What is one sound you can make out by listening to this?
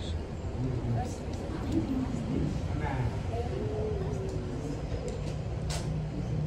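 Several men and women chat quietly nearby.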